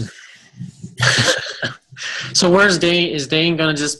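A woman laughs loudly over an online call.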